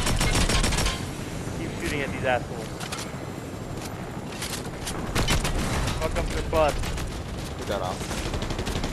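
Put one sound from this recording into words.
A helicopter's rotor whirs steadily.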